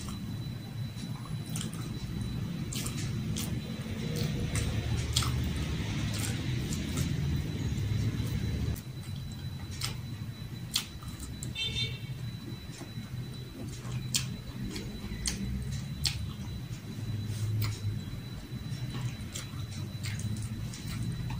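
A young woman chews food loudly and smacks her lips close by.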